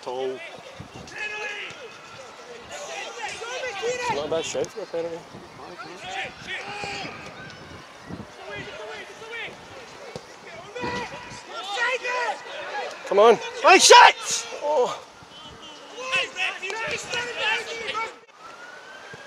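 Players shout and call to each other across an open pitch outdoors.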